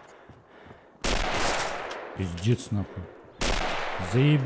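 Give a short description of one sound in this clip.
A rifle fires with a loud, echoing boom.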